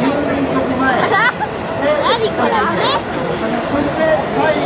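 A crowd of men and women cheers and shouts loudly.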